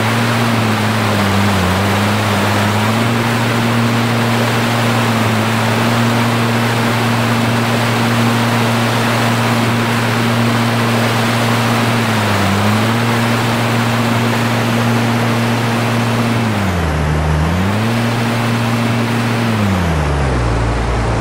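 A boat's outboard motor drones steadily, dipping briefly in pitch now and then.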